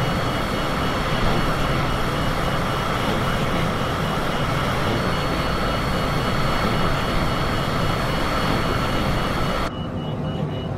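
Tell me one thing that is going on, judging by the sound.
Jet engines roar steadily outside.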